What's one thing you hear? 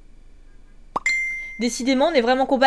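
A short message notification chime sounds.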